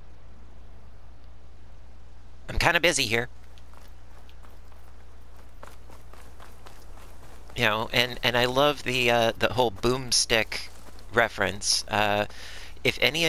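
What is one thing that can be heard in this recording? Footsteps crunch softly on dry ground.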